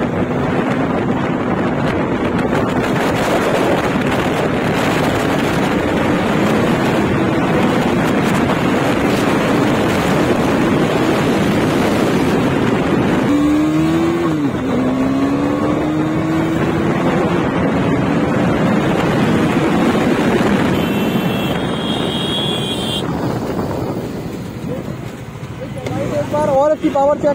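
Wind rushes loudly past, easing near the end.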